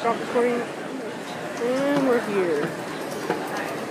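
A moving walkway hums and rattles steadily.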